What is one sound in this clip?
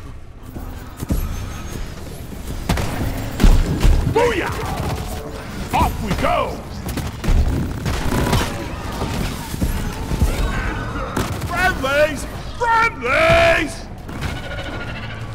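Gunfire and explosions boom and crackle in rapid bursts.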